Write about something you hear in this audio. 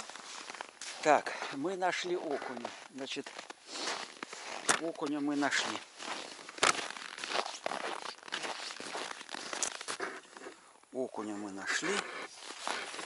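An older man talks calmly, close by.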